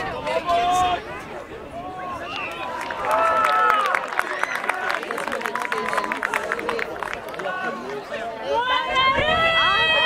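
Young men shout and cheer nearby, outdoors.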